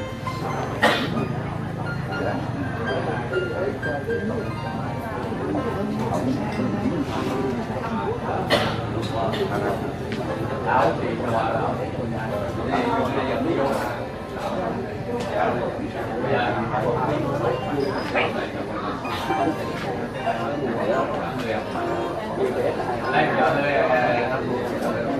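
A crowd of men and women talk quietly nearby.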